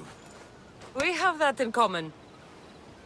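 A young woman answers calmly up close.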